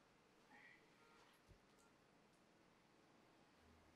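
Small objects clink as they are set down on a hard surface.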